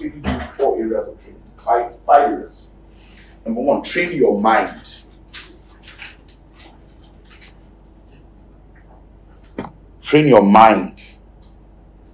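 A man speaks with emphasis into a clip-on microphone, in short bursts with pauses.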